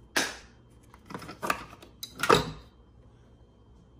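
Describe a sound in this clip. A plastic lid clicks shut on a coffee machine.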